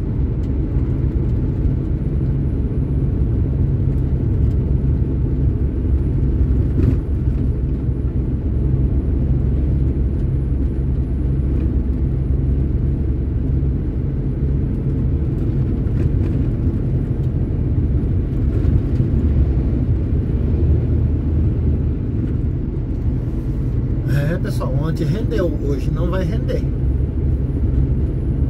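A vehicle's engine and tyres rumble steadily on the road.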